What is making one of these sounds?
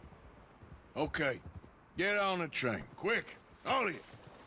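A man speaks firmly and urgently, close by.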